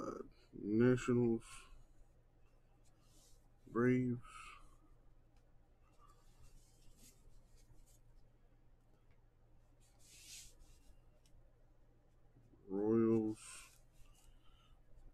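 A marker squeaks and scratches across a card.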